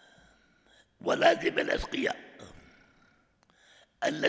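An elderly man speaks calmly into a microphone in a large echoing hall.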